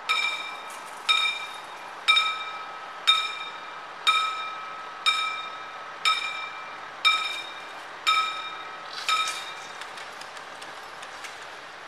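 A crossing barrier lowers.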